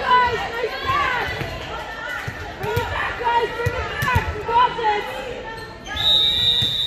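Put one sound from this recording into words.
Young women call out and cheer to each other in a large echoing hall.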